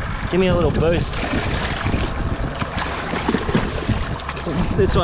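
A fish splashes and thrashes at the water's surface close by.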